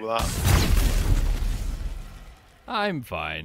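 A magic spell bursts with a loud roaring whoosh that fades away.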